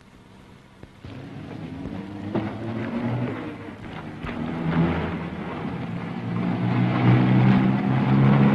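A car engine hums as a car approaches.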